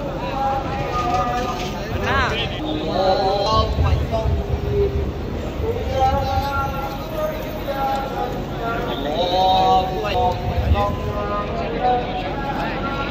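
A man chants a prayer through a loudspeaker.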